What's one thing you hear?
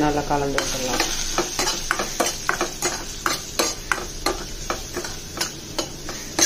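A metal spoon scrapes and clatters against a pan.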